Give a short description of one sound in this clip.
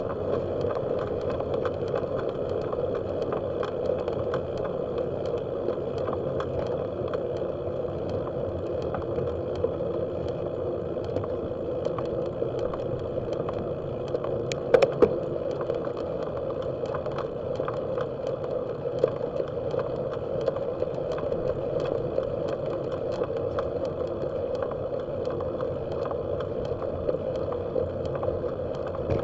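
Light rattles and clicks come from a moving bicycle.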